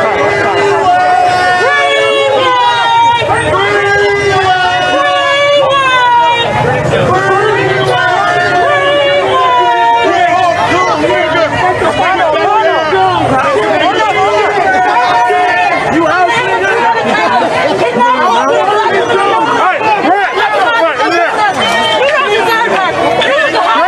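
A crowd chants and sings loudly outdoors.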